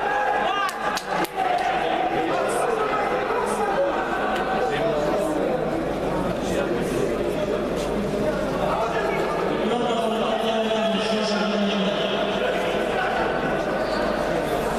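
A crowd chatters and murmurs throughout a large echoing hall.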